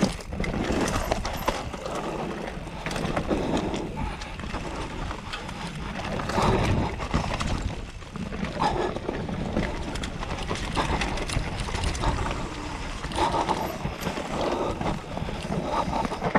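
A bicycle frame rattles and clatters over roots.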